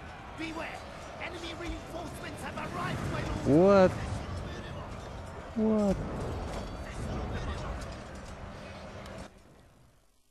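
A battle rages with clattering weapons.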